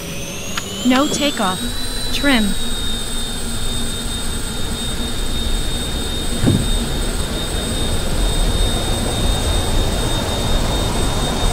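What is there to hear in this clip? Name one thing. Aircraft wheels rumble along a runway.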